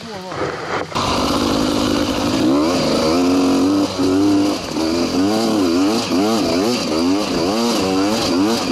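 A dirt bike engine roars loudly close by, rising and falling in pitch as it rides.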